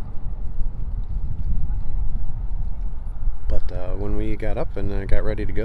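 Small waves lap gently against a boat.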